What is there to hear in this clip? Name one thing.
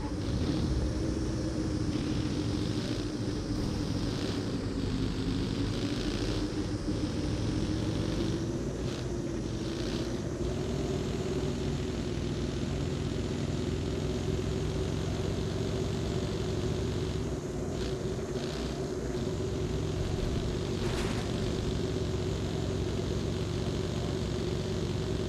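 A buggy engine drones steadily while driving, its pitch slowly rising.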